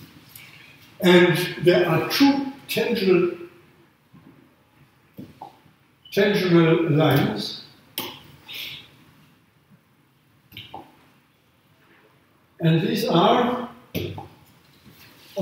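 An elderly man speaks calmly in bursts, close by, with pauses in between.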